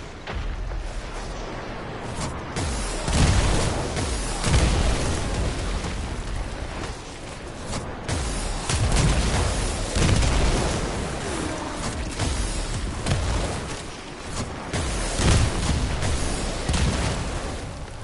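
Gunfire and energy blasts boom and crackle in quick bursts.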